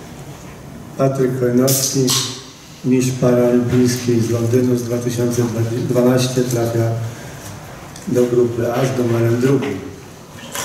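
A man reads out through a microphone.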